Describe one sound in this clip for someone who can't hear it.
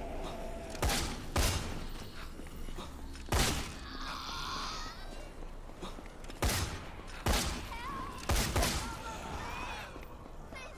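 Footsteps run over pavement.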